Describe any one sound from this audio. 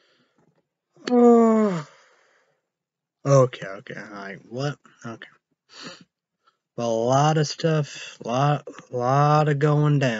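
A young man talks animatedly close to the microphone.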